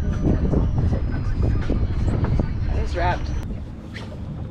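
Wind buffets the microphone with a low rumble.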